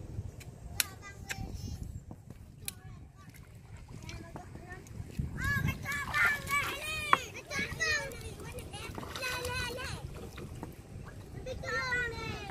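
Small fish splash and flap at the water's surface.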